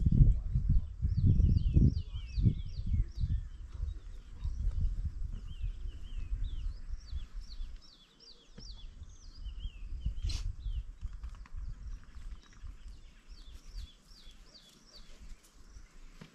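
African wild dogs twitter with high, chirping calls.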